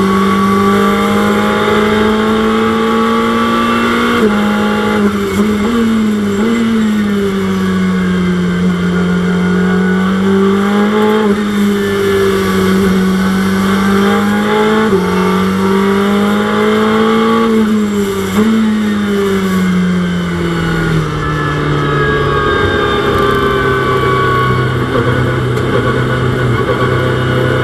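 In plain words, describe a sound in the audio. A race car engine drones loudly, its pitch rising and falling with gear changes.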